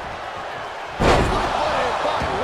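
A heavy thud sounds as a body slams onto a wrestling mat.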